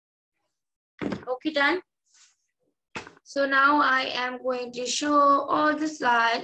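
A woman speaks clearly through an online call.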